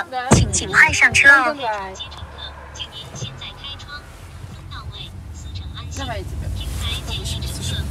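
A car engine and tyres rumble steadily on the road.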